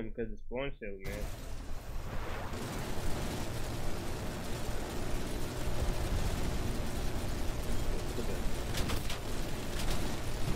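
A heavy machine gun fires in a rapid, steady roar.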